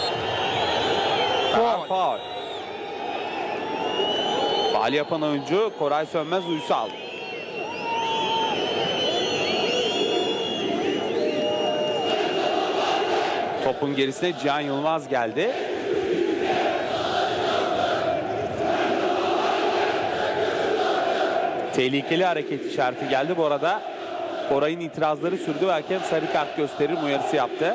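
A large crowd chants and cheers loudly from the stands outdoors.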